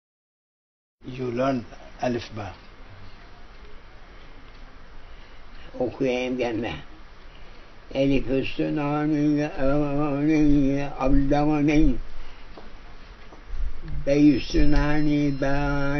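An elderly man speaks slowly nearby.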